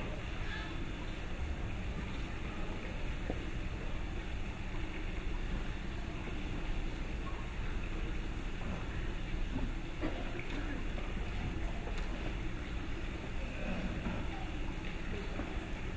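A man prays aloud in a slow, even voice, heard with echo in a large hall.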